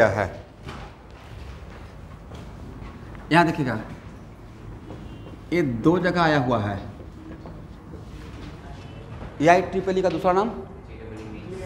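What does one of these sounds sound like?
A man speaks loudly in short bursts.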